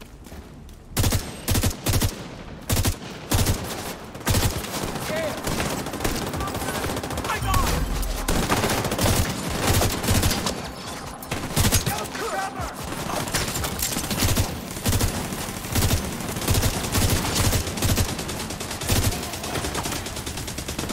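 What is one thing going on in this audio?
Gunfire rattles in loud, sharp bursts.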